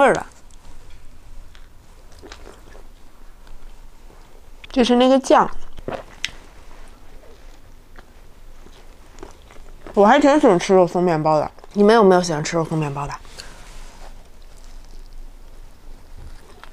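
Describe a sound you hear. A young woman bites and chews crispy bread close to a microphone.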